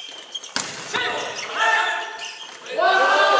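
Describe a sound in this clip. Young men shout loudly across the court.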